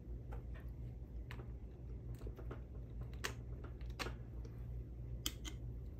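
Small plastic parts click and tap as hands handle a model car chassis.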